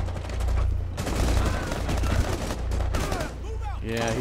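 Rapid gunfire rings out.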